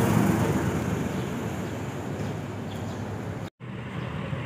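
A motorcycle approaches along the road.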